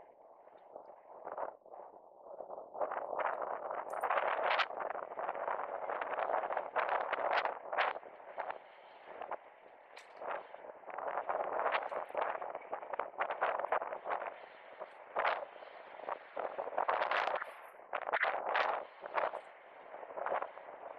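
Wind rushes and buffets in gusts outdoors.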